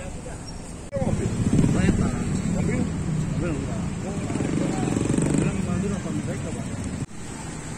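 A motorbike engine passes by.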